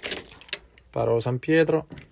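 Keys jingle as they are lifted off a hook.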